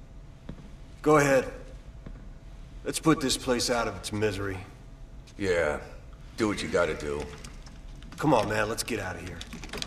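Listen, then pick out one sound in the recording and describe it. A man speaks calmly in a low voice, close by.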